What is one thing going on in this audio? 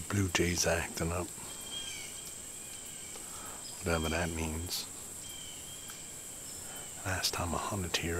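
A man speaks quietly and close by, in short bursts.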